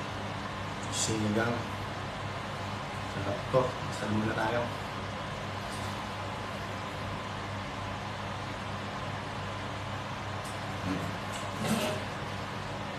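A young man speaks briefly and casually, close by.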